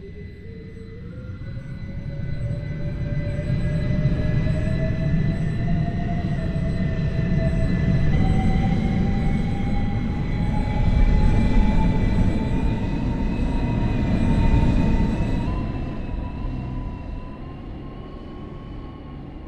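A train's wheels rumble over the rails, growing louder and then fading.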